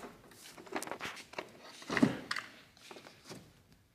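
Metal clunks as a car battery is lifted out of its holder.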